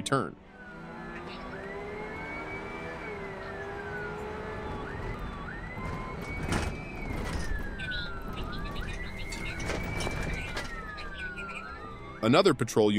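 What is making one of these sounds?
A police siren wails, rising and falling in long sweeps.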